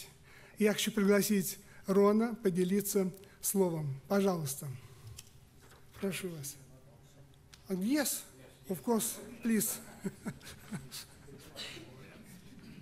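An elderly man speaks with animation into a microphone in a large echoing hall.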